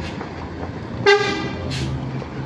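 A bus horn honks loudly once.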